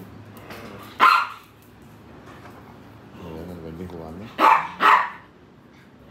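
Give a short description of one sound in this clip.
A dog barks sharply a few times.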